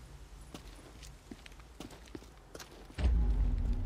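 Footsteps run quickly on a hard road.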